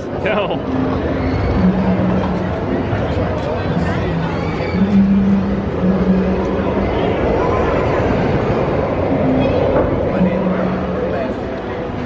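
A tall swing ride whirs steadily as it spins overhead.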